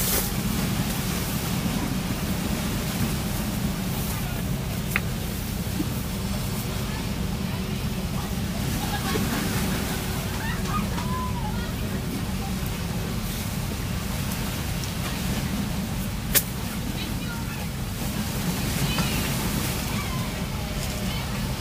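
Footsteps shuffle on the ground close by.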